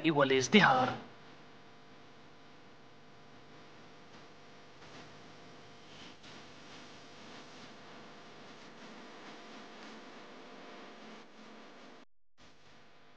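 A guitar plays softly.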